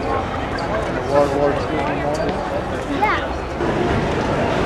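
Voices of men and women chatter nearby outdoors.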